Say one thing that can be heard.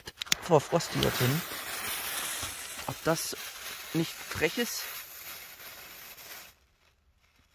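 A fuse fizzes loudly, spraying sparks.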